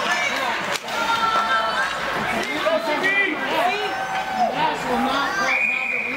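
A crowd of spectators chatters loudly nearby in an echoing rink.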